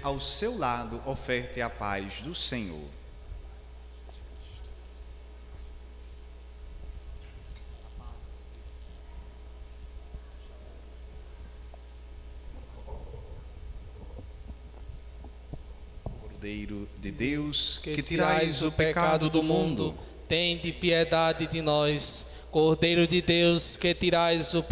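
A young man sings into a microphone in a reverberant hall.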